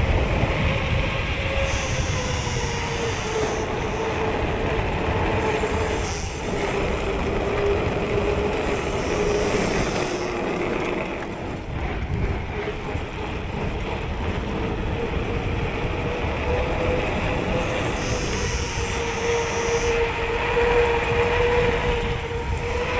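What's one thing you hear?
Bicycle tyres hum steadily on smooth asphalt.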